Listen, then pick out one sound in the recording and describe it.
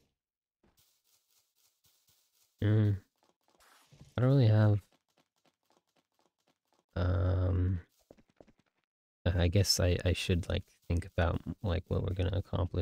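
Quick footsteps patter on grass and stone.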